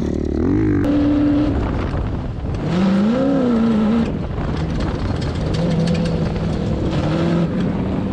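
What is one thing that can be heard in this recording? A dune buggy engine roars close by.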